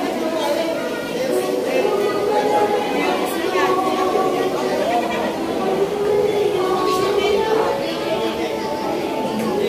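A crowd of men and women chatter nearby in an echoing hall.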